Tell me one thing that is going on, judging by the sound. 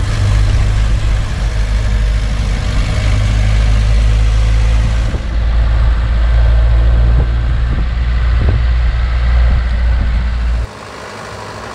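An old truck engine rumbles loudly and steadily from inside the cab.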